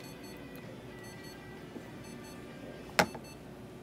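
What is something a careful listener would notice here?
A plastic syringe clacks lightly as it is set down on a metal table.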